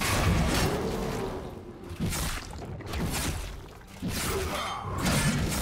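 Spell effects whoosh and crackle in a video game battle.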